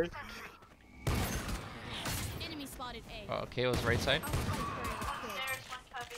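A pistol fires a quick series of shots.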